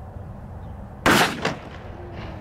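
A gunshot cracks loudly outdoors.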